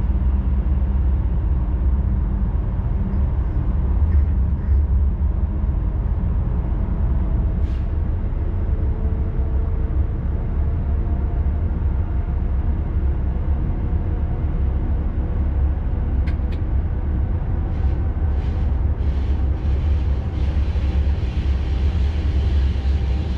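A train rumbles steadily through an echoing tunnel.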